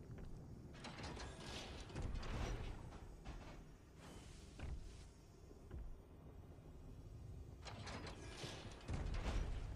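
A heavy lever creaks and clunks as it is pulled.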